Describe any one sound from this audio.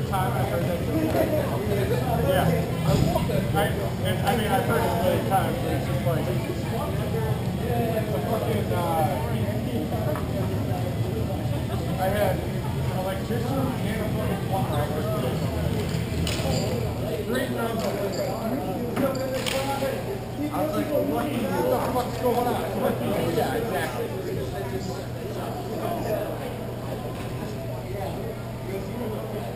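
Men shout and call out to each other across the hall.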